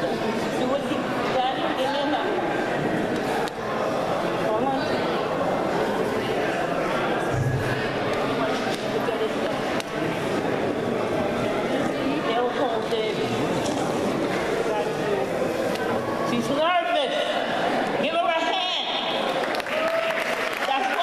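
A crowd of men and women chatters throughout a room with a bit of echo.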